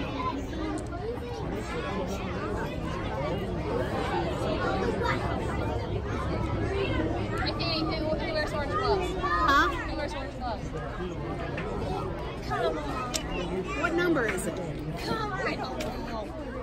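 A crowd of children and adults chatter and call out nearby outdoors.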